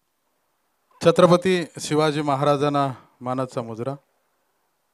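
A man speaks loudly into a microphone over a loudspeaker.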